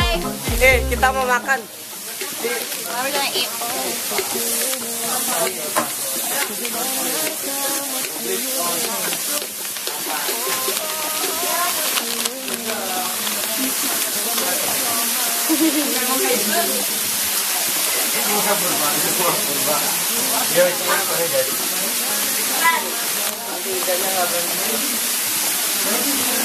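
Several young people chatter in the background.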